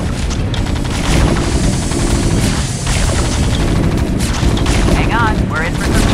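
Rapid gunfire rattles amid battle noise in a game.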